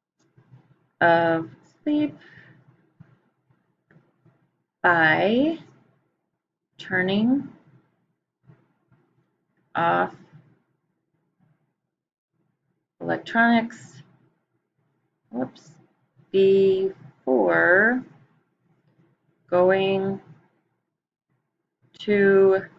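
A woman speaks calmly and slowly into a microphone, in short phrases with pauses.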